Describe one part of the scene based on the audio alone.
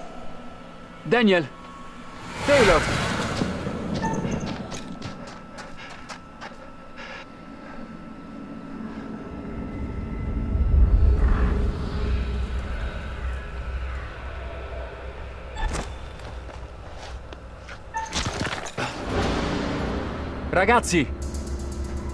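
A young man calls out loudly.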